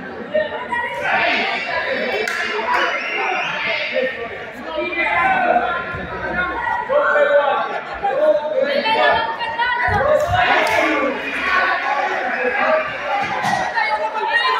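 A crowd of spectators shouts and cheers throughout.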